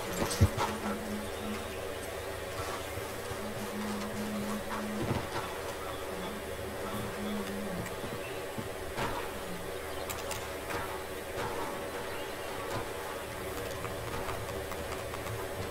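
Footsteps tread on grass and wooden boards.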